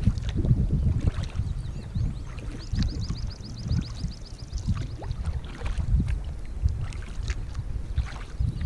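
Water laps softly against the hull of a gliding canoe.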